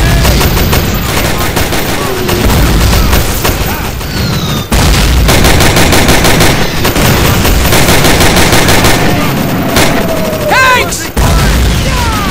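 Rapid gunfire rattles again and again, close by.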